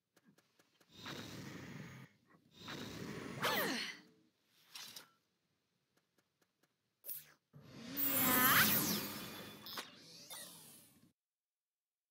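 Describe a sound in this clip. A magic spell bursts with a loud rushing whoosh.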